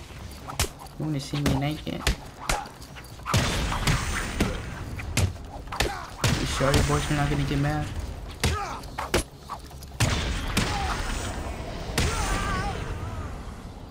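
Men grunt and groan as they are struck.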